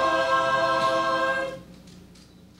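An elderly man sings a long, held note loudly into a microphone, then stops.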